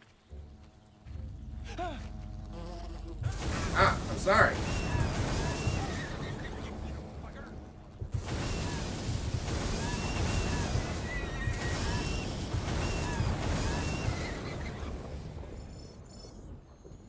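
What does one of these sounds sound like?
Magical blasts whoosh and roar during a fight.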